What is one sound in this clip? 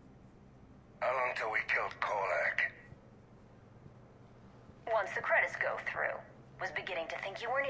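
A man speaks calmly over a radio.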